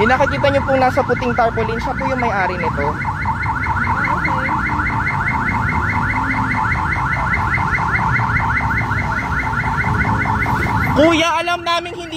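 Motorcycles and cars rumble past on a nearby road.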